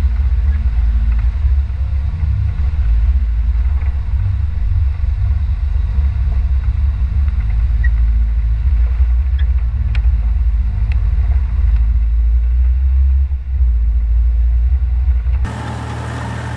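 A vehicle engine rumbles deep and low while driving over rough ground.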